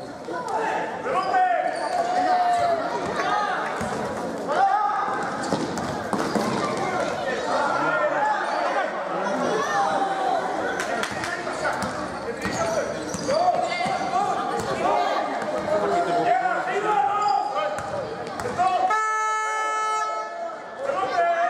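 A basketball thumps on a hard floor.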